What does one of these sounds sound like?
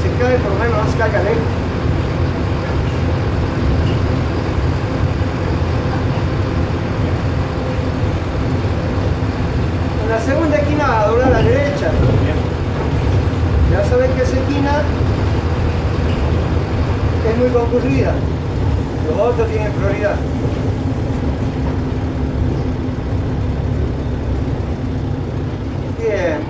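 A bus engine rumbles steadily as the bus drives along.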